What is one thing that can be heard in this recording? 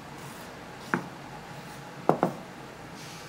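A bowl is set down on a wooden counter with a knock.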